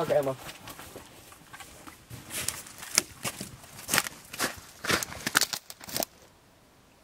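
Twigs and brush rustle and snap as a man steps over fallen logs.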